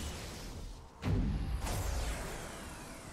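A deep boom rumbles and echoes.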